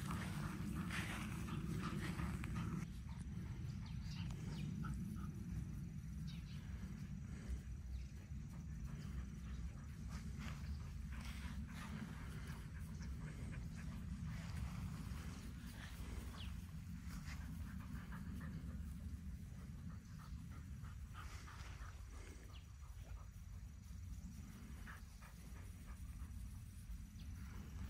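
Dogs patter and scamper across grass.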